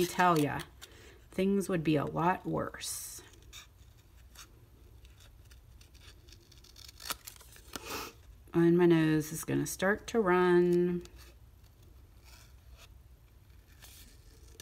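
Scissors snip through card stock.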